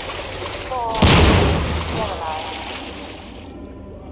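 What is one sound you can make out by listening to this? A burst of water splashes up loudly and settles.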